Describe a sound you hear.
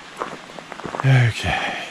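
Footsteps crunch on a gravel trail.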